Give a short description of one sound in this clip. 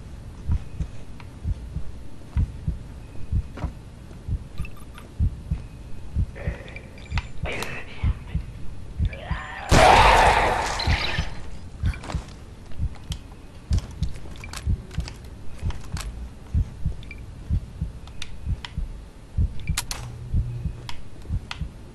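Heavy footsteps thud steadily on a hard floor.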